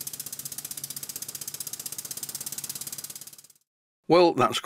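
A small steam engine runs fast with a rapid, even chuffing that fades away.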